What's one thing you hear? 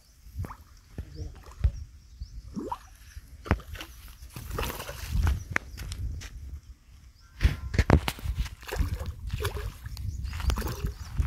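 A fish splashes and thrashes at the surface of the water.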